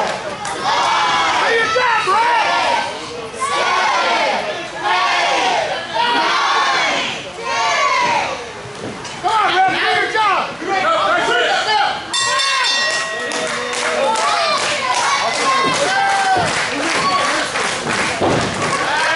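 A crowd of spectators chants and cheers loudly in an echoing hall.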